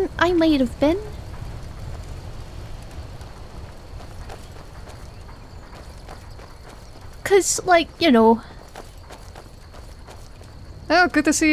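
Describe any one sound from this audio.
Footsteps crunch on gravel.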